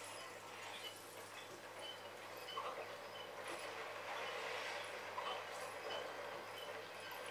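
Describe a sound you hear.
Small coins chime in quick, bright pings as they are picked up in a video game.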